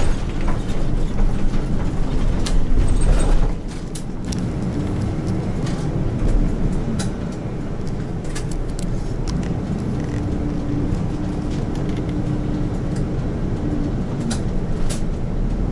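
The bus body rattles and clicks as it drives.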